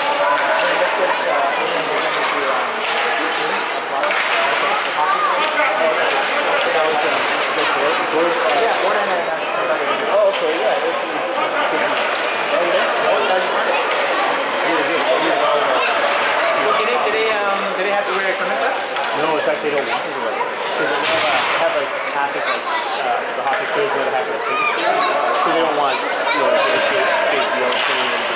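Skates scrape and glide on ice.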